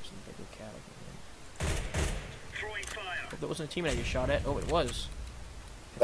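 A gun's metal parts click and rattle as it is handled.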